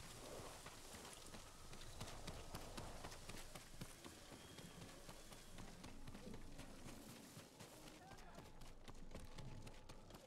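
Footsteps run quickly up stone steps.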